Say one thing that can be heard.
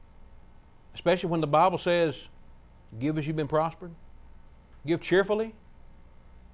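A middle-aged man speaks emphatically into a microphone, in short bursts.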